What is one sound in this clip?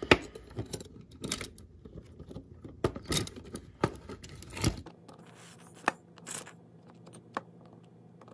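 Small plastic parts click and rattle as they are handled close by.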